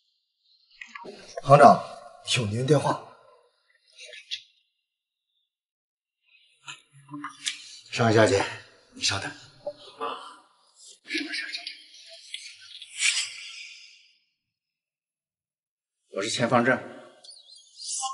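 An elderly man speaks calmly.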